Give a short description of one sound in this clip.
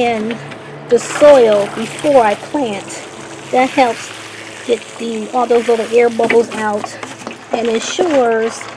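Water splashes from a watering can onto soil.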